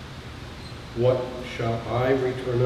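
An elderly man speaks calmly through a microphone.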